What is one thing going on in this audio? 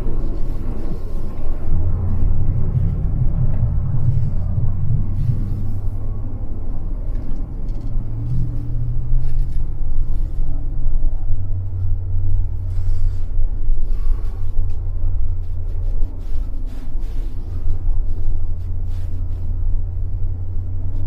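Tyres rumble over packed snow.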